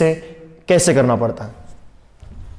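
A young man speaks briefly nearby.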